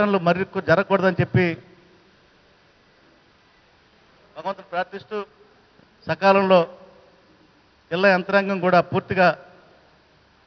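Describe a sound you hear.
A middle-aged man speaks with emphasis into a microphone, in short bursts with pauses.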